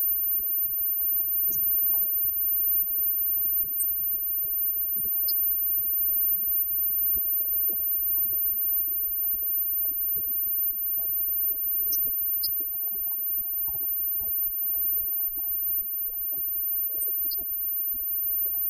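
A live band plays loud rock music.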